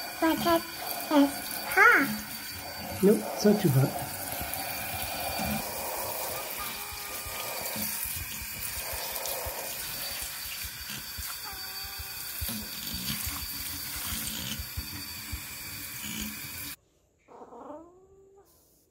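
A kitten meows loudly and repeatedly.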